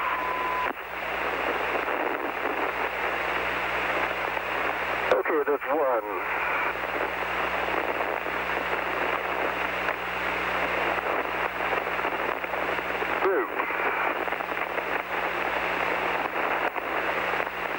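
A gas jet hisses steadily.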